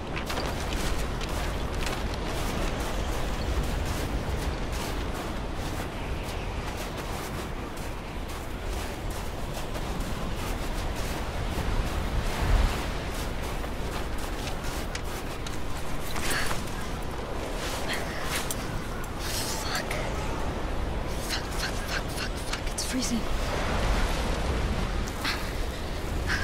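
Strong wind howls steadily outdoors in a blizzard.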